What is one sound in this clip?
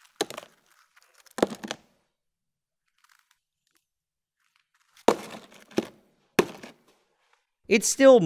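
Chunks of hard ice cream clatter onto a table.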